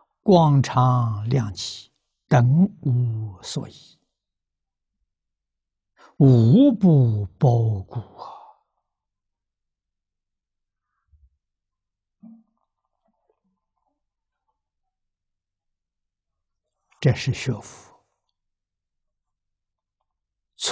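An elderly man speaks calmly into a close microphone, pausing between phrases.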